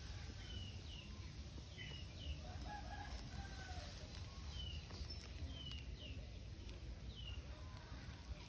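A baby monkey squeaks softly now and then.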